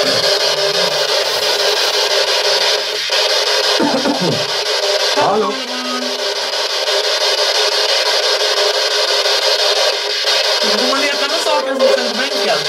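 A small radio scanner hisses with loud, steady static and brief warbling bursts.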